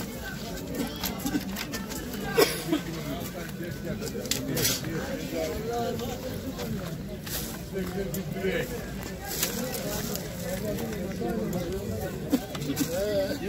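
Metal odds and ends clink and rattle as a hand rummages through them.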